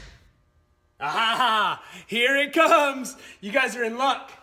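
A man shouts and laughs excitedly up close.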